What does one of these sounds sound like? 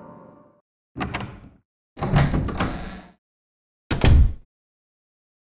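A heavy wooden door creaks open and thuds.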